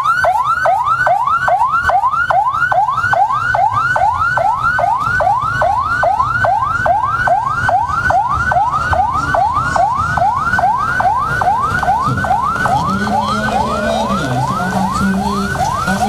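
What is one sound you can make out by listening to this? Motorcycle engines rumble and rev as the bikes ride past.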